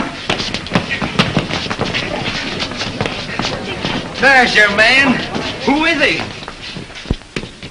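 A crowd of men and women chatter and shout excitedly nearby.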